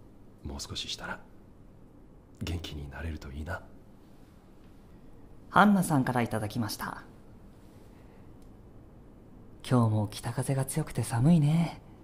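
A young woman talks cheerfully and brightly nearby.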